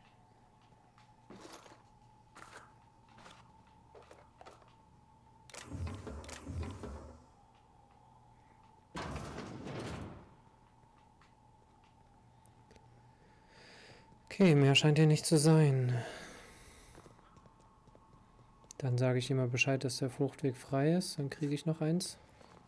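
Footsteps tap softly across a hard floor.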